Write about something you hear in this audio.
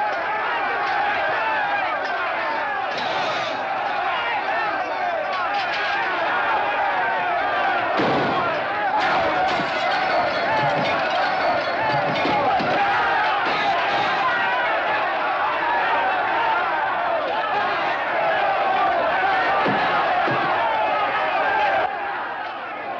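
A large crowd of men shouts and roars loudly.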